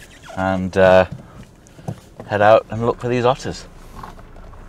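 A man speaks with animation from inside a nearby car.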